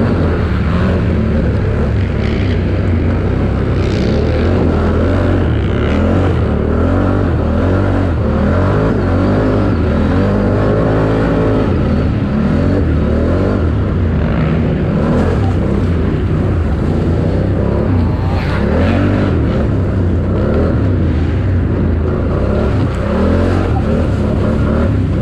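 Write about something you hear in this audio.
A quad bike engine revs hard, rising and falling in pitch.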